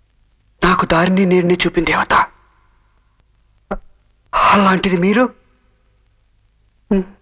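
A young man speaks emotionally, close by, in short bursts.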